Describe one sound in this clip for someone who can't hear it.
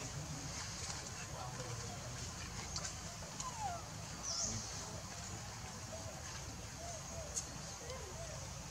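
A baby monkey squeaks softly now and then.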